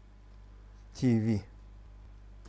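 A man says a few words briefly through a microphone over an online call.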